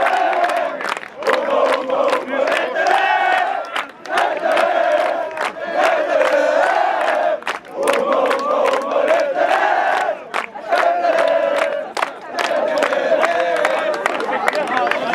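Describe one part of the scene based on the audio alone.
A group of young men claps hands in rhythm.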